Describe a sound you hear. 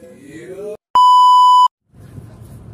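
A steady high test tone beeps briefly.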